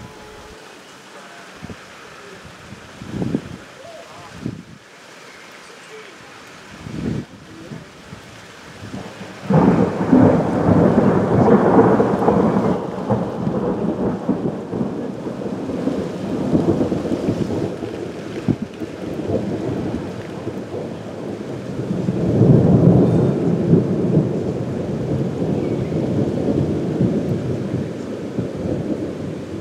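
Heavy rain pours down outdoors and grows louder.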